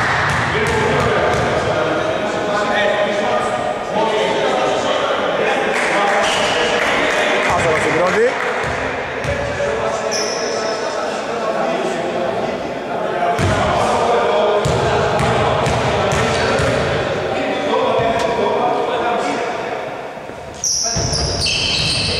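Men's voices chatter and call out in a large echoing gym.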